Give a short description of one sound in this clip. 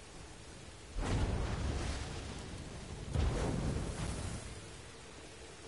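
A fiery blast bursts with a deep rumble.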